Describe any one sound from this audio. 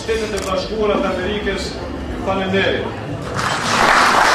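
A man speaks into a microphone over a loudspeaker, addressing a room.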